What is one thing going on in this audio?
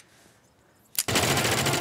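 A gunshot fires loudly.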